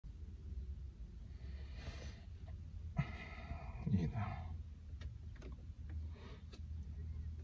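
A car engine hums low and steady inside the cabin.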